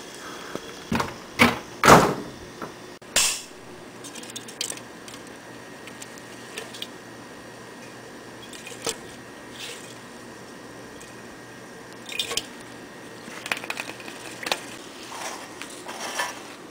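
Metal cans clatter and knock against a hard floor.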